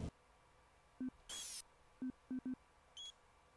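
Short menu beeps click several times.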